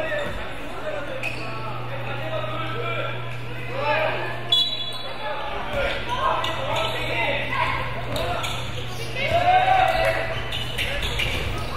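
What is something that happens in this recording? Children shout and call out in a large echoing gym.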